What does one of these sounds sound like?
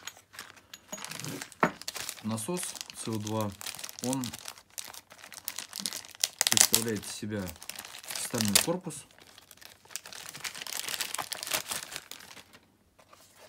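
Plastic packaging crinkles and rustles as hands pull it open.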